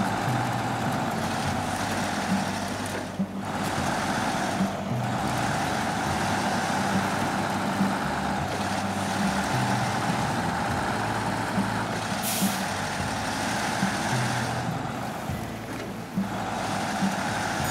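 A heavy truck engine rumbles and strains steadily.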